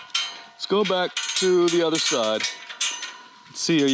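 A metal chain rattles and clinks against a gate.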